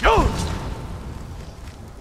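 Flames roar in a sudden burst.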